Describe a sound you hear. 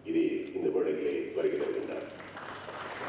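A man speaks formally through a microphone.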